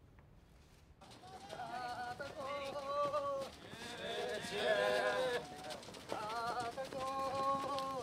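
A group of young men chant in unison outdoors.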